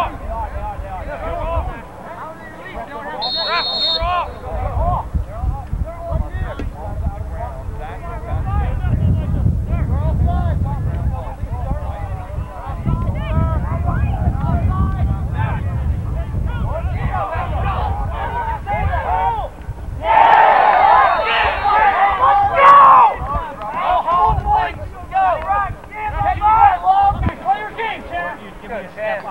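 A crowd of spectators and players shouts and cheers outdoors.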